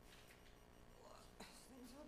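A woman speaks briefly and quietly.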